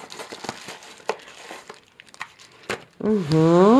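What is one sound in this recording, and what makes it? A small plastic bag crinkles in a hand.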